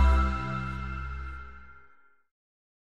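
A jingle chimes brightly and fades out.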